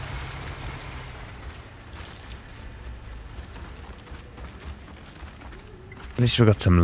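Footsteps run over soft dirt.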